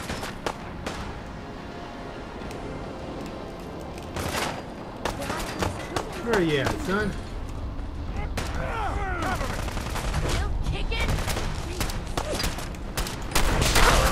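A rifle fires sharp shots in short bursts.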